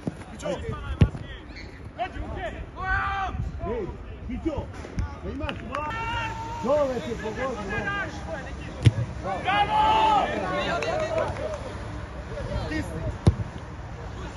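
A football thumps off a boot.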